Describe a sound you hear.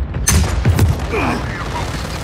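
A loud explosion booms and debris crackles.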